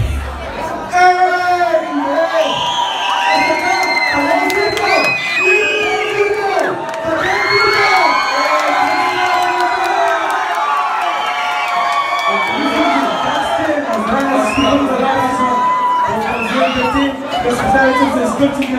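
A crowd of young men and women sings loudly together in a packed, echoing room.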